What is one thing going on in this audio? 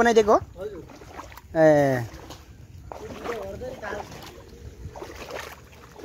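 Water trickles and splashes steadily.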